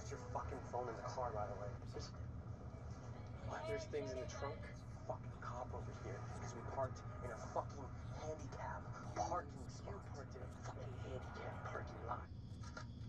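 A young man talks excitedly close by.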